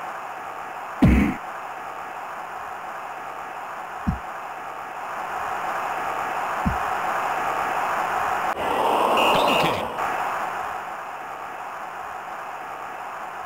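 A crowd roars steadily in a large stadium, swelling for a moment.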